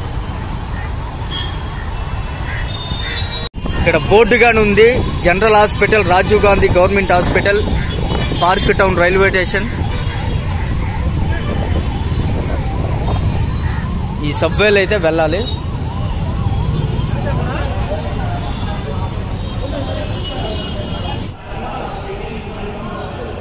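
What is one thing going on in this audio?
Street traffic rumbles steadily in the background outdoors.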